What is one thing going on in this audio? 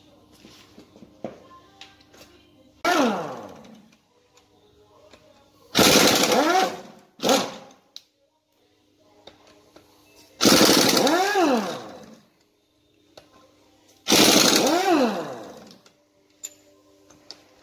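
Metal parts clink against an engine.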